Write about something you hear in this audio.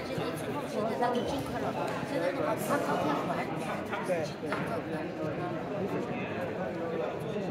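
Several people chatter in the background of a large echoing hall.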